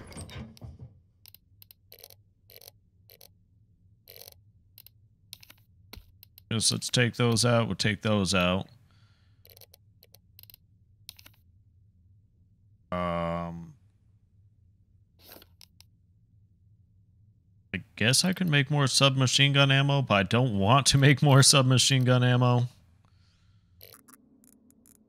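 Soft menu clicks tick as a selection moves through a list.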